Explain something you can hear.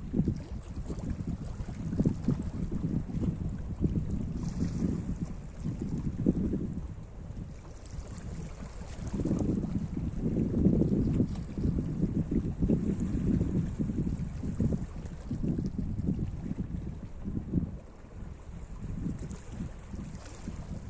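Small waves lap and wash over rocks along the shore.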